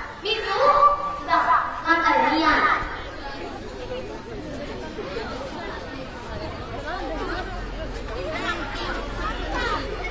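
A crowd of schoolchildren murmurs and chatters.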